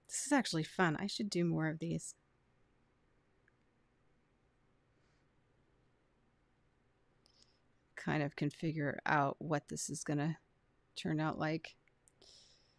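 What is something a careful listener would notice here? A young woman talks calmly and clearly into a microphone.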